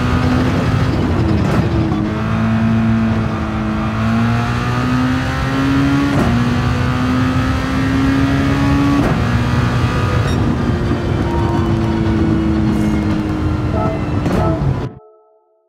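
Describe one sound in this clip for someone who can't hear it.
A racing car engine roars loudly, rising in pitch as it speeds up and dropping briefly at each gear change.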